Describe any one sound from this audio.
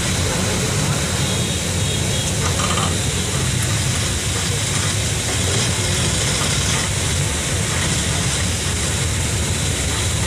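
Motorbikes and scooters putter past in traffic.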